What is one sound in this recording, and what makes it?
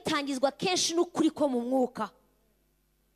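A woman speaks loudly through a microphone.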